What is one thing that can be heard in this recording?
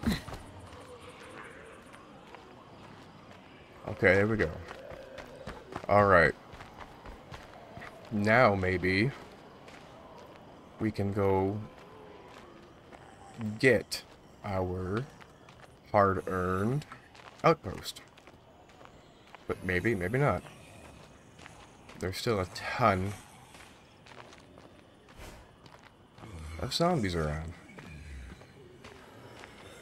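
Soft footsteps crunch on gravel and pavement.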